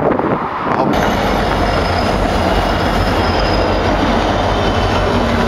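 Diesel-electric freight locomotives rumble past close by.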